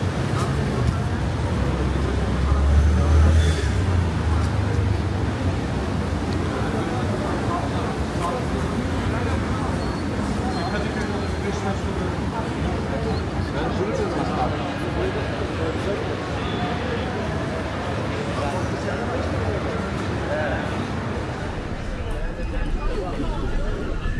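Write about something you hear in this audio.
A crowd of people chatters on a busy street outdoors.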